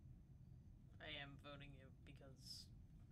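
A young man speaks briefly and casually into a close microphone.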